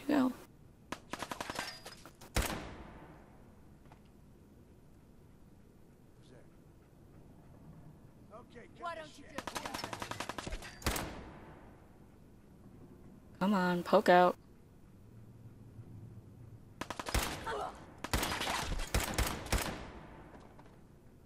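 A rifle fires single shots that echo.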